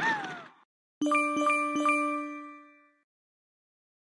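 Three bright chimes ring out and fade slowly.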